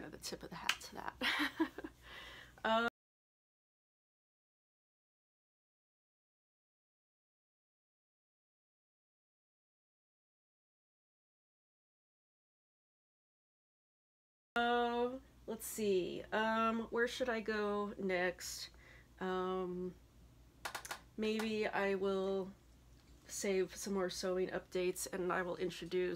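A young woman talks to a microphone close up, calmly and with animation.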